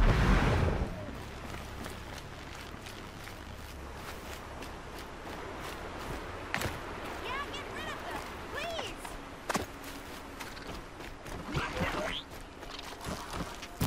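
Footsteps crunch over dirt and grass.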